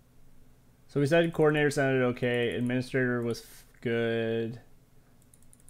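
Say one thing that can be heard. A man speaks into a microphone, close and with animation.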